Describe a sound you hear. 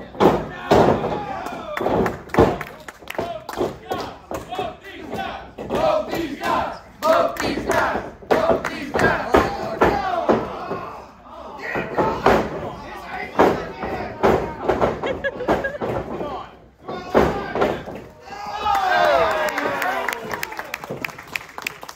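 Men shout and call out loudly in an echoing hall.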